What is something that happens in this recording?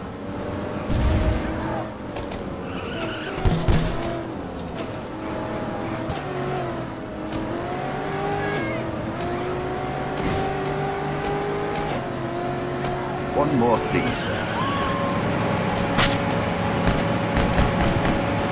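Objects crash and smash with loud bangs.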